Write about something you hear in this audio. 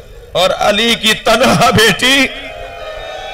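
A middle-aged man chants loudly and emotionally into a microphone.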